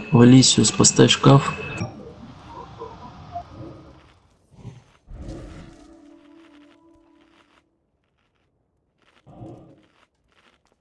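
Magic spells burst and crackle in a game fight.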